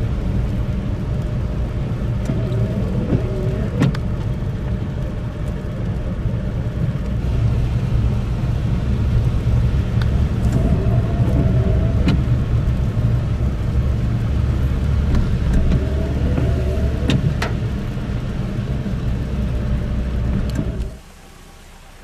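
Tyres roll over a wet, slushy road, heard from inside a car.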